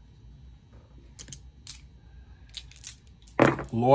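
Dice rattle in a cup and clatter onto a board.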